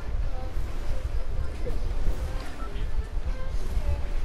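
Water splashes and swirls as a swimmer paddles.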